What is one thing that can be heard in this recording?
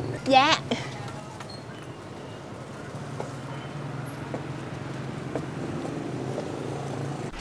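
A motor scooter engine idles with a steady low hum.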